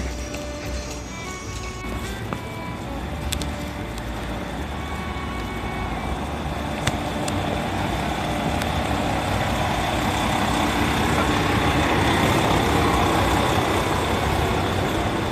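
Traffic hums steadily along a city street.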